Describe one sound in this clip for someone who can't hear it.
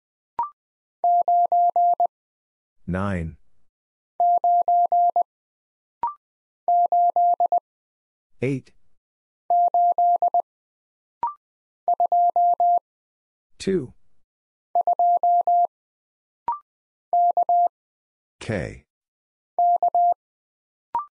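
A telegraph key sends Morse code as quick, high beeps in short bursts.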